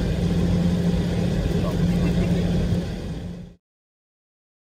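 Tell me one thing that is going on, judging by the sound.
A train rumbles steadily along with a low hum, then the sound cuts off.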